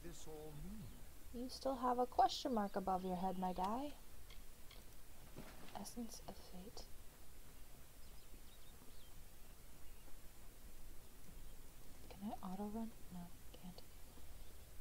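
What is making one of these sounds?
A young woman speaks casually into a microphone, close by.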